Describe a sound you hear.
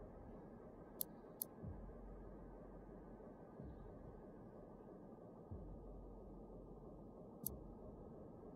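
Short menu clicks tick as a selection changes.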